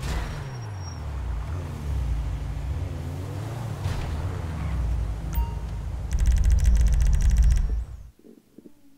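A car engine roars as the car drives along a street.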